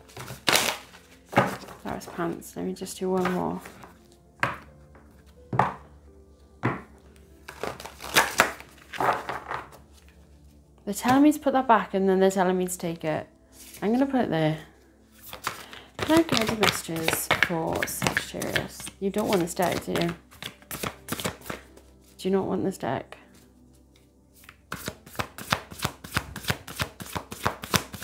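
Playing cards rustle and flick as they are shuffled.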